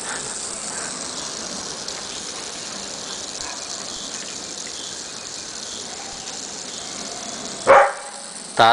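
Water sprays steadily in a fine hiss.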